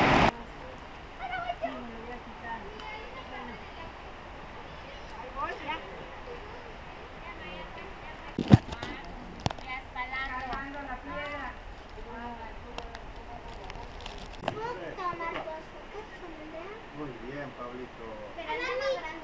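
Adult men and women chat at a distance.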